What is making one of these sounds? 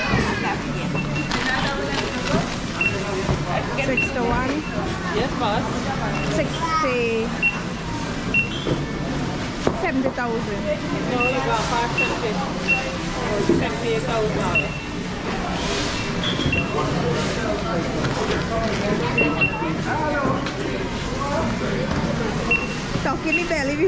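A barcode scanner beeps again and again.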